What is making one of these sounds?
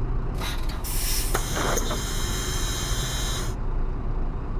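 Air hisses loudly as bus doors open.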